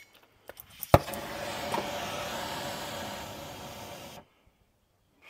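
A gas torch hisses steadily.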